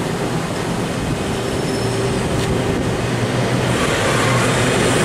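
An electric locomotive hums loudly as it passes close by.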